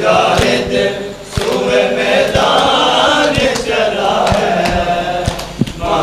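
A man chants a lament loudly through a microphone and loudspeaker.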